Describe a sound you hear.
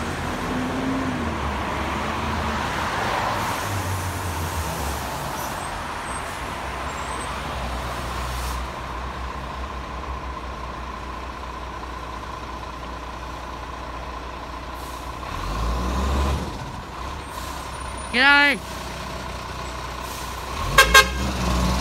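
A heavy truck engine rumbles nearby.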